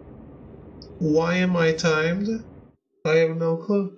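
A man talks loudly and with animation into a close microphone.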